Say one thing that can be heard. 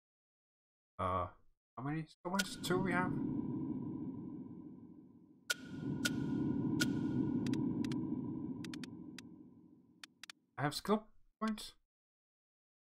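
A young man speaks casually into a microphone.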